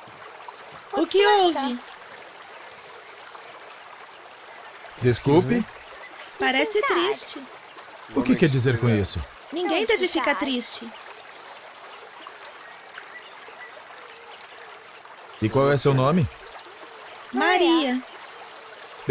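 A young girl speaks calmly.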